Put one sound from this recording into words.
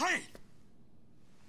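A man shouts a short word.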